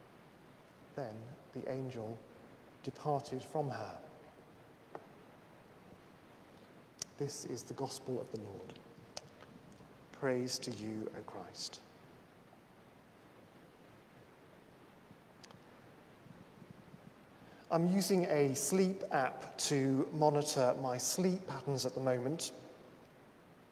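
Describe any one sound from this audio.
A man speaks steadily at a distance, heard through a microphone in an echoing hall.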